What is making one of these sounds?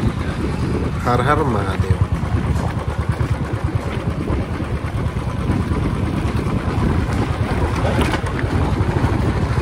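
A man talks casually close to the microphone.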